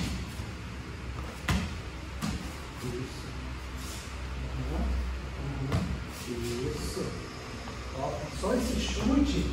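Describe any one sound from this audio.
Bare feet thump and shuffle on a padded mat.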